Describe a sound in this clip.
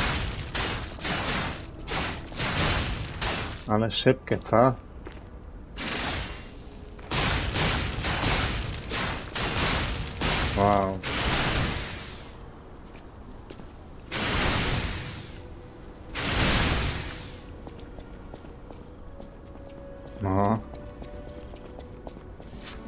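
Footsteps run quickly over a hard floor.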